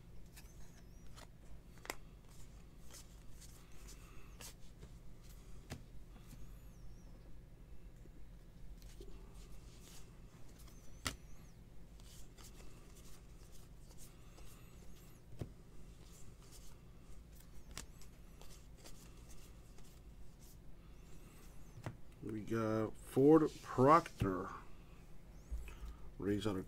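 Trading cards flick and rustle as they are shuffled by hand.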